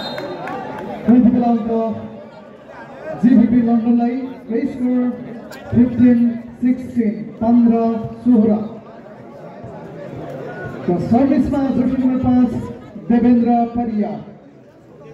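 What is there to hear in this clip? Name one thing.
A man announces loudly over a loudspeaker.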